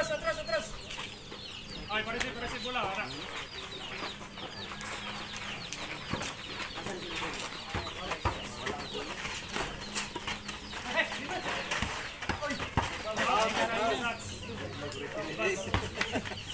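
A basketball bounces on hard dirt.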